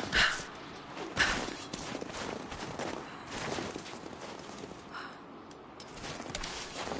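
Wind blows steadily through a snowy forest.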